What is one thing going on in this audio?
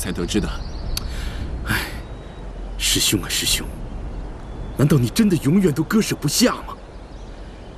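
A man speaks with feeling, close by.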